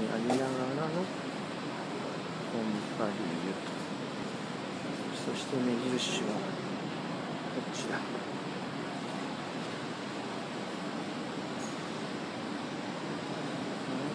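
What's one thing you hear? Traffic hums steadily along a city street.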